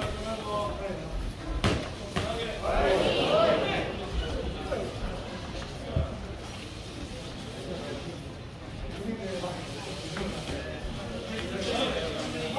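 Spectators at ringside shout and chatter.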